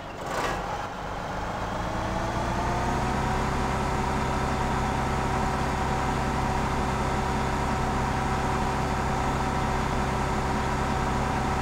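A combine harvester engine drones steadily, rising in pitch as it speeds up.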